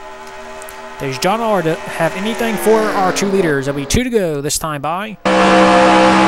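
Racing car engines whine past one after another, rising and falling in pitch.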